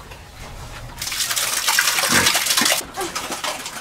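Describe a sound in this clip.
Feed pours out of a bucket with a rushing hiss.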